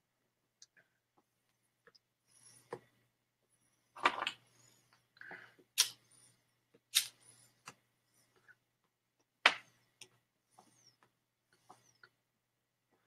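A man puffs on a pipe with soft sucking pops.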